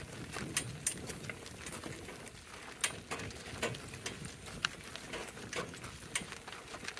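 Harness jingles and clinks with each step.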